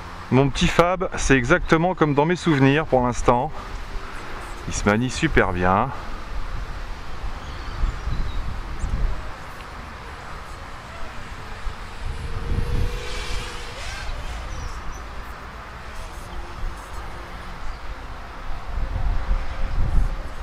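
A small drone's motors whine, quickly rising and falling in pitch as it flies fast.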